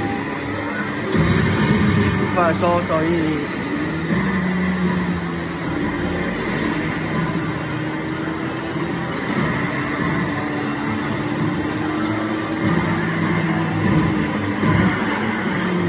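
An arcade racing game plays loud engine noise and music.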